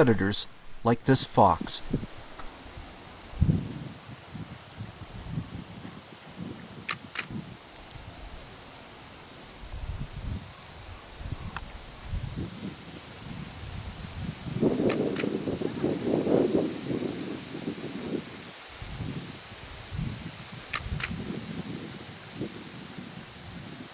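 Wind rustles low through the open air.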